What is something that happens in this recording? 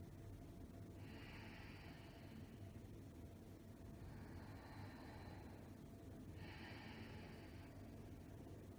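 A woman breathes in and out deeply.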